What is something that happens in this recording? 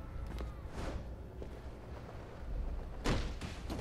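Leaves rustle as a figure crashes through bushes.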